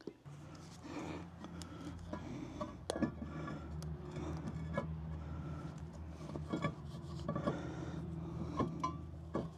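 A metal brake disc clinks and scrapes as it is fitted onto a wheel hub.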